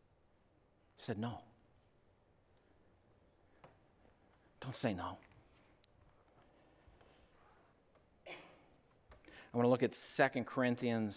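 A man speaks with emphasis into a microphone, pausing between short phrases.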